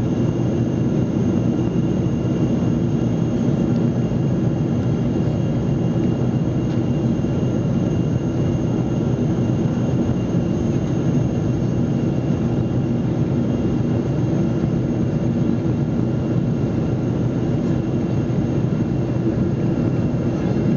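A jet engine roars steadily, heard from inside an aircraft cabin.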